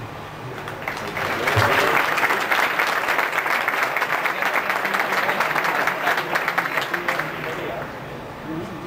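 A seated audience applauds outdoors.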